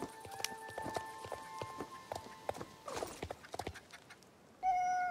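Horse hooves clop at a walk.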